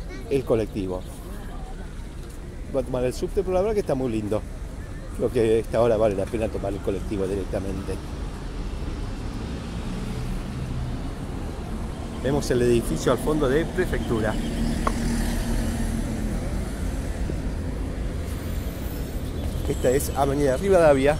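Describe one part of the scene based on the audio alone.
A man talks nearby, outdoors.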